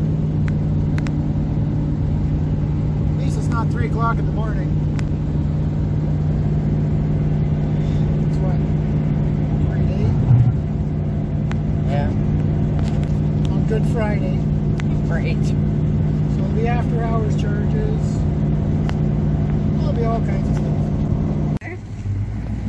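A car engine hums steadily from inside the cab.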